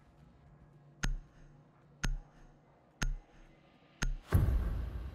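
A game's countdown timer beeps once a second.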